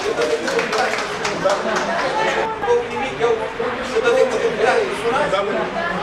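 Several people chatter in the background.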